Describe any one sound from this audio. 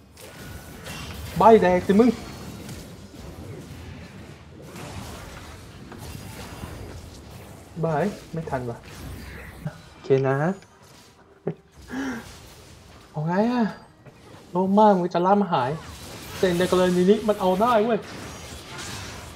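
Video game spells crackle and blast during a fight.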